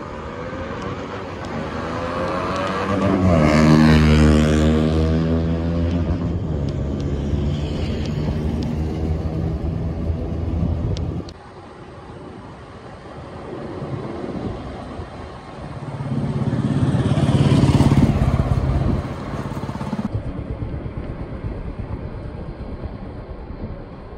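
A car drives along a road.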